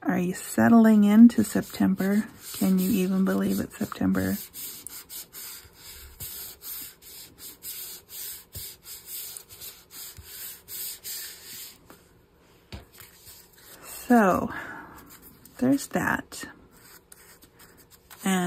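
Hands rub and smooth paper with a soft rustle.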